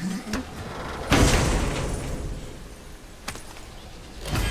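A heavy chest lid creaks open with a burst of sparkling sound.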